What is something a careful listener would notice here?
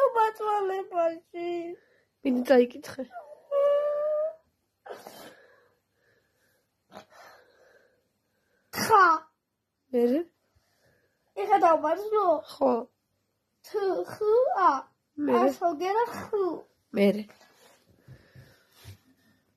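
A young boy cries and sobs close by.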